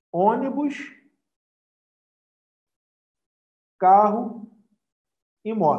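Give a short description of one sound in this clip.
A man speaks calmly into a microphone over an online call, in short phrases with pauses.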